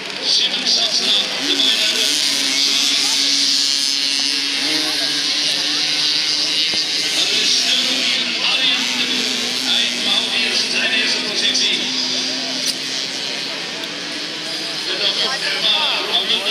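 Motorcycle engines roar and rev as the bikes race past.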